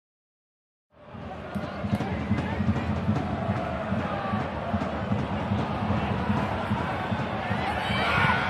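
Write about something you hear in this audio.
A stadium crowd murmurs and calls out during play.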